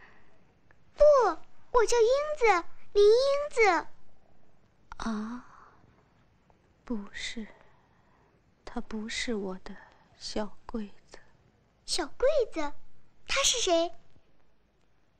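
A young girl answers in a high, clear voice.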